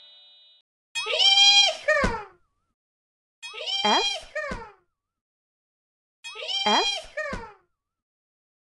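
A fox yelps in short, high, wavering calls.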